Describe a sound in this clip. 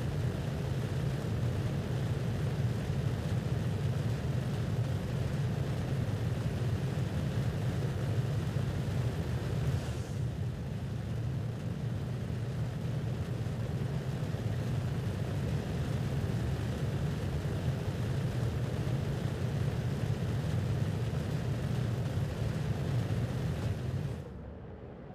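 Spaceship engines roar with a steady low rumble.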